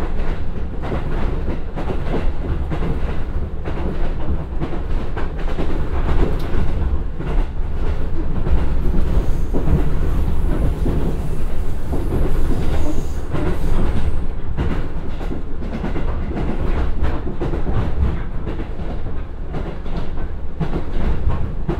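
Train wheels clatter and rattle over the rails.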